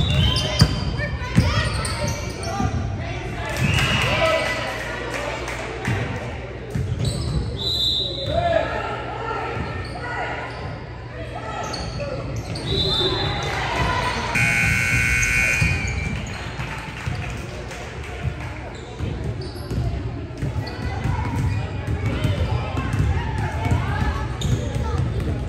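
A ball thuds against hands and the floor.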